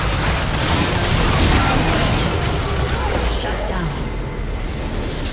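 Magic spells blast and crackle in a fast fight.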